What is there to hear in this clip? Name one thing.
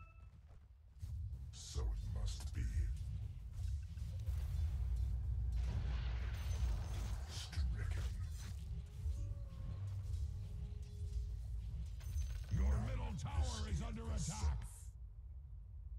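Fantasy game combat plays, with spell blasts and weapon hits clashing in bursts.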